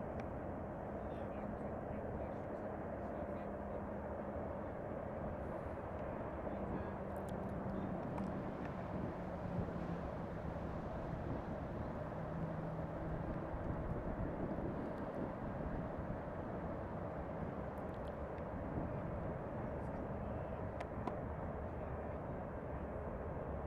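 A long train rumbles steadily in the distance.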